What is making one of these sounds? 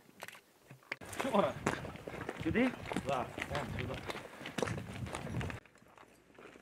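Footsteps crunch on rubble and dry grass.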